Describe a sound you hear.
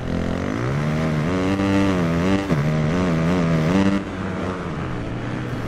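A motorbike engine revs and whines as it accelerates and shifts gears.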